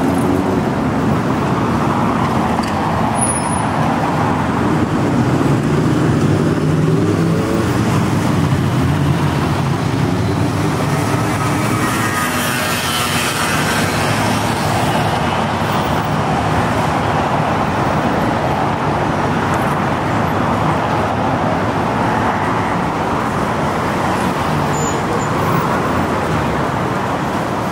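City traffic hums steadily nearby.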